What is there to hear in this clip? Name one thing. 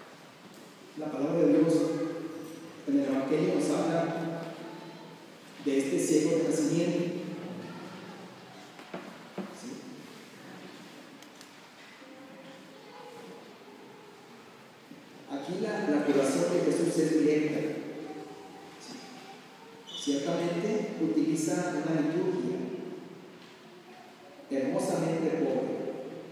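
A man speaks calmly through a microphone in a large echoing hall, with pauses between phrases.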